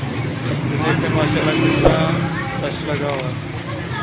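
Men talk in a busy crowd nearby.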